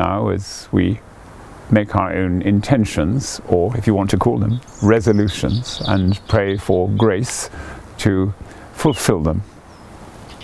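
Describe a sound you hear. An elderly man speaks calmly and clearly, close by.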